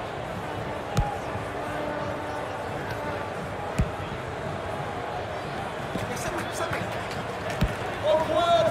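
A ball is kicked with sharp thuds now and then.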